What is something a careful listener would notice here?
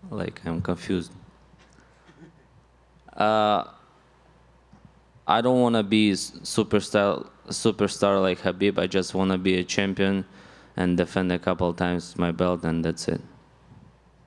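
A young man speaks calmly into a microphone, with pauses between phrases.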